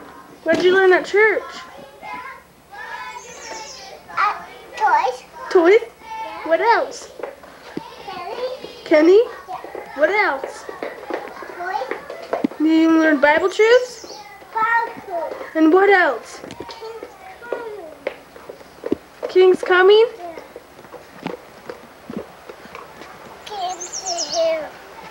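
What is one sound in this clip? A small child talks and babbles excitedly close by.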